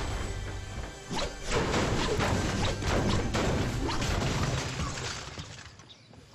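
A pickaxe clangs repeatedly against a sheet-metal truck body.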